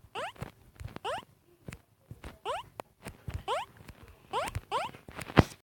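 Short rising electronic chirps from a video game repeat quickly.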